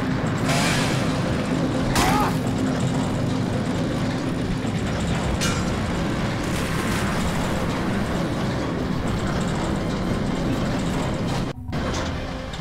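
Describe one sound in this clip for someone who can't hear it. A chainsaw engine runs with a steady drone.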